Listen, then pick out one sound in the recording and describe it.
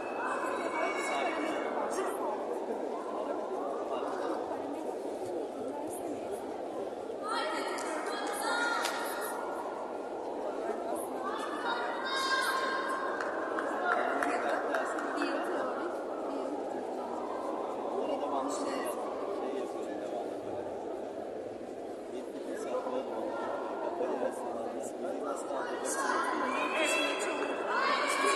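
Spectators shout encouragement loudly.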